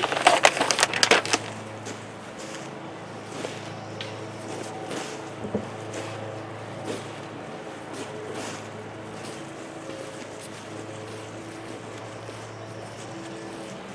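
Gloved hands rustle and scrape through loose potting soil.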